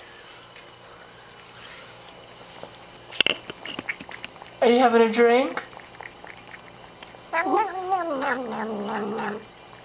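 A cat laps water.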